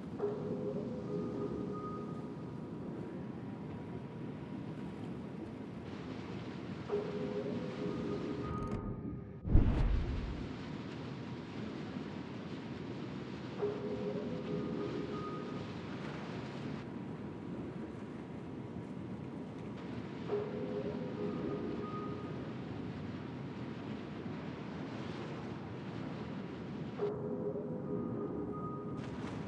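Water rushes and splashes along a ship's hull.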